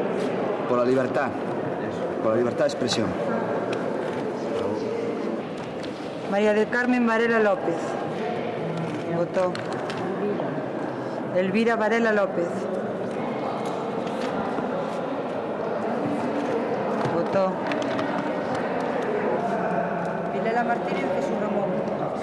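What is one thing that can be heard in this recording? Voices murmur in a large echoing hall.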